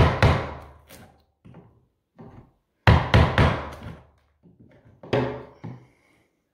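A blade scrapes and chips at wood.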